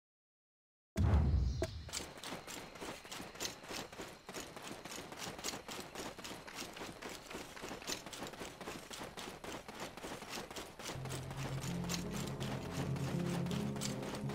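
Footsteps crunch quickly on dirt and grass.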